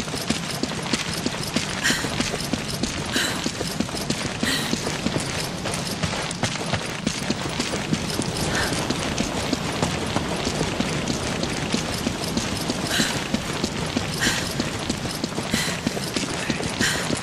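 Footsteps patter steadily on stone.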